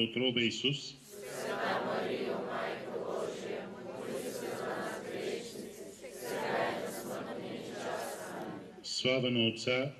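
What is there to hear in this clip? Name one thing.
A crowd murmurs and chatters quietly.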